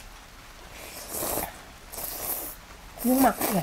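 A woman slurps noodles loudly close by.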